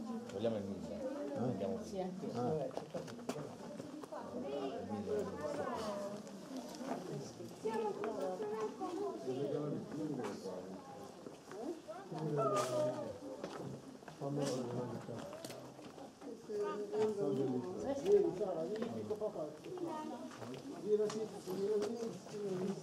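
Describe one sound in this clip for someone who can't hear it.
Several men and women chatter and talk nearby outdoors.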